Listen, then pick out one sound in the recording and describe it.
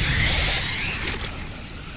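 Laser guns fire with sharp zaps.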